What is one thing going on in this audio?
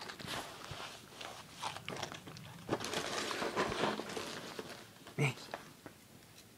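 A puppy crunches dry cereal.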